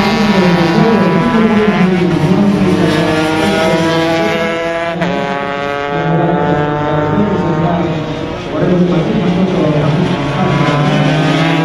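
Racing motorcycle engines roar loudly, revving up and down as the bikes pass by.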